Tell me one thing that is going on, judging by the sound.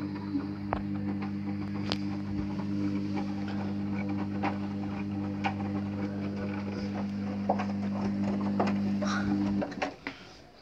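Laundry and water thump and splash inside a washing machine drum.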